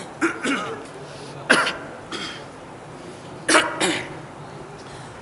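A man sobs and cries out into a microphone.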